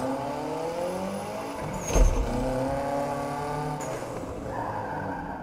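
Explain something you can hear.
A car engine revs and hums steadily.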